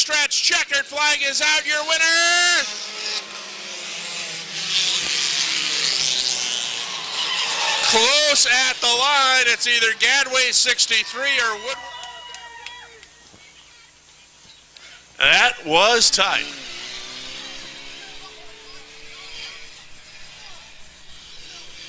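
Race car engines roar.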